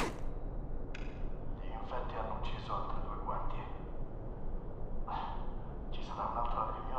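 A recorded voice plays back through a small, tinny speaker.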